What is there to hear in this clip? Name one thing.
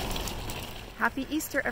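A woman speaks close up with animation.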